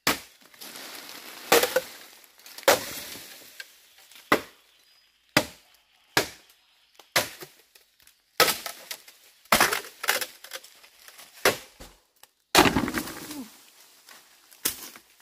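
Bamboo creaks and cracks as it splits.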